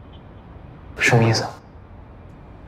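A young man asks a short question quietly, close by.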